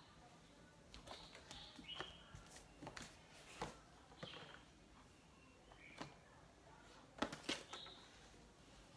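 A cardboard box knocks and rustles as it is set down on a hard floor.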